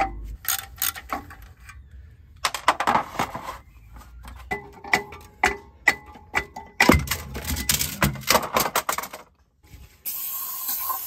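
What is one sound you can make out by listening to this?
Heavy metal parts clank and knock together.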